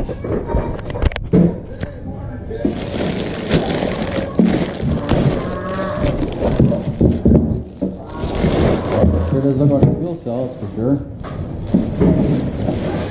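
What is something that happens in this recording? Plastic wrap crinkles and rustles as hands pull it off.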